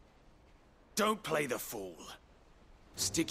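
A man speaks sharply and angrily.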